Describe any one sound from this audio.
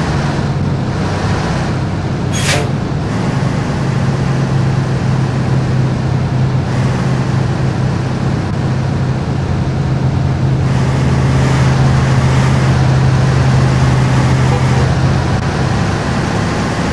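Traffic rushes past on a busy road.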